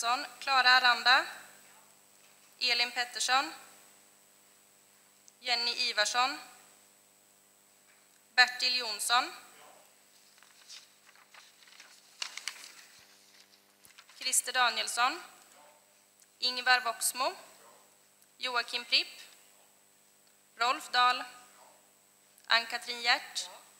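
A woman speaks calmly into a microphone in short phrases, heard through loudspeakers in a large echoing hall.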